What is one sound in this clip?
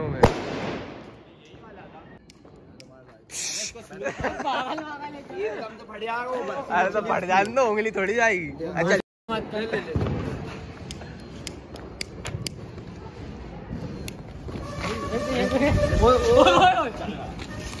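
A firework fizzes and sprays sparks.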